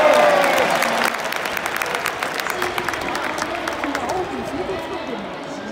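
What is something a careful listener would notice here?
Fans in a stadium crowd clap their hands in quick rhythm.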